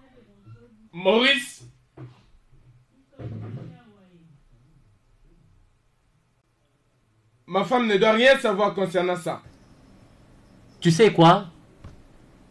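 A second man speaks briefly in a low, calm voice, close by.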